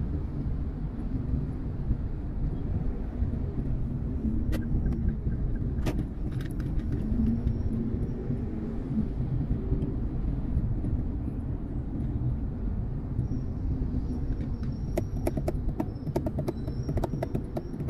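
A car engine hums steadily from inside the car as it moves through traffic.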